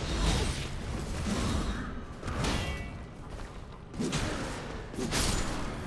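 Swords swing and clash in short, sharp bursts.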